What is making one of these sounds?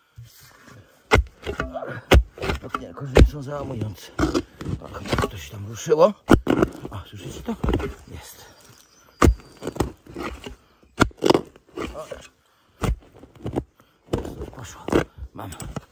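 A spade digs into soil with crunching thuds.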